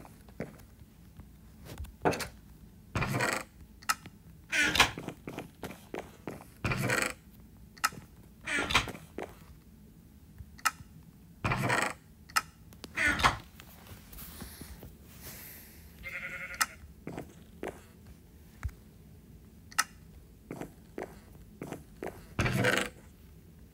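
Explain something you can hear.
A wooden chest creaks open and thuds shut, again and again.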